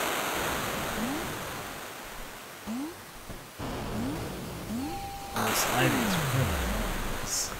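Short rising electronic chirps sound as a small figure jumps.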